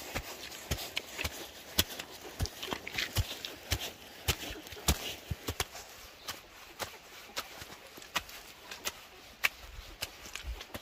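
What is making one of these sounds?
A hoe chops and scrapes into wet earth with repeated dull thuds.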